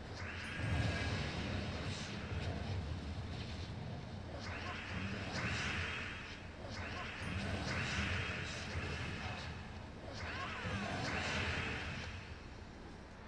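Game sound effects swoosh and chime in bursts.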